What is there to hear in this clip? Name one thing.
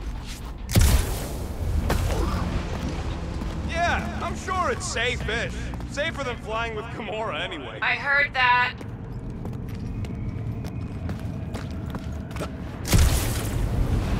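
Heavy thuds sound as a figure lands from a jump.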